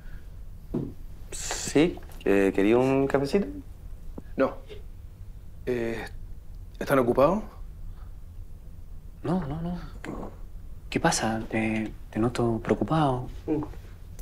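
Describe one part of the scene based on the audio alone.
A man answers calmly from close by.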